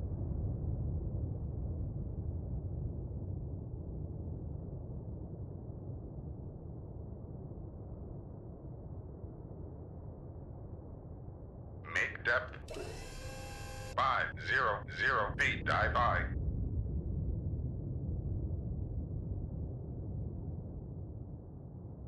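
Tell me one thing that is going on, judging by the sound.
A deep, muffled underwater rumble drones steadily.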